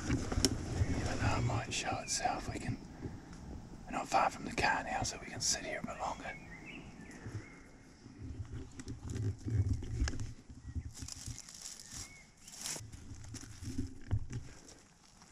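A middle-aged man speaks quietly and close by.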